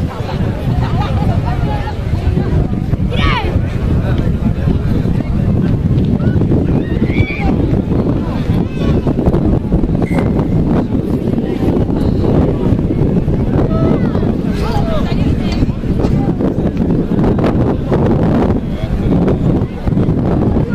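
A crowd of spectators murmurs and calls out outdoors.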